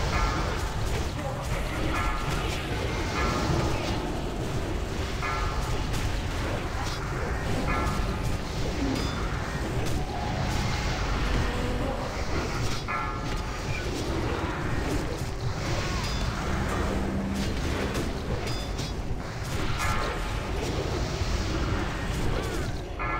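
Game sound effects chime and ring out repeatedly.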